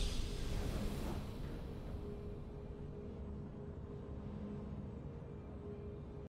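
A triumphant game fanfare rings out and slowly fades.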